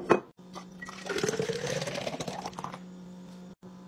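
Milk pours into a glass jug, the gurgle rising in pitch as it fills.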